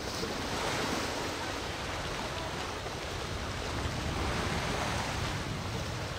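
Water laps and sloshes gently.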